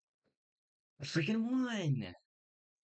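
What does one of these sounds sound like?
A young man speaks briefly into a close microphone.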